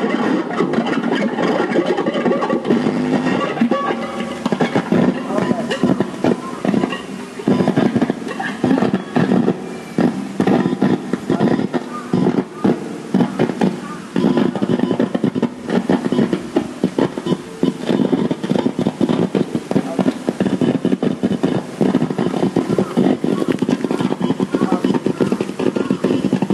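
An electric guitar plays loud, distorted notes through an amplifier outdoors.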